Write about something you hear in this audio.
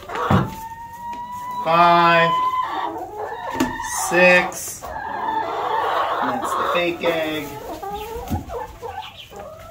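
A hen clucks close by.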